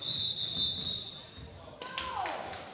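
A referee's whistle blows a long, shrill blast.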